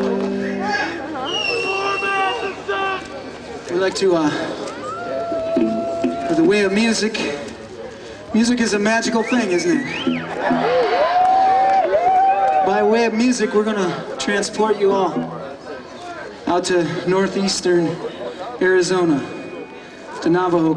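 A band plays music loudly on an outdoor stage.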